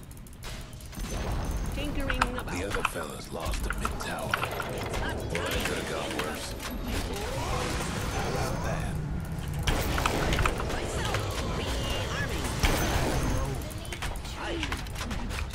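Video game battle effects crackle and boom.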